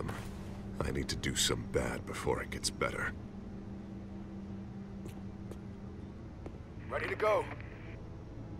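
A man speaks in a low, serious voice.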